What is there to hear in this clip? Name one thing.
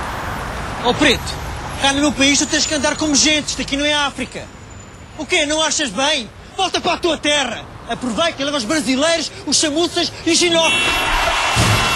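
A man sings loudly and passionately.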